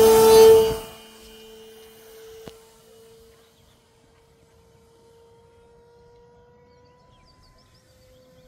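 A model airplane's motor drones steadily as it flies away and grows faint.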